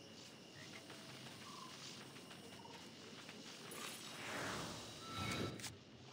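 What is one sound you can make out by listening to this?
A magic spell whooshes and sparkles.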